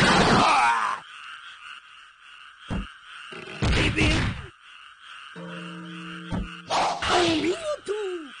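Swords slash and strike with sharp, heavy impacts.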